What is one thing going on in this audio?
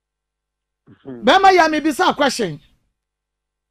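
A girl speaks briefly into a microphone.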